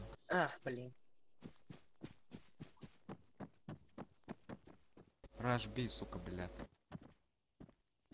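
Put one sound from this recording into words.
Footsteps tread steadily over dirt and gravel.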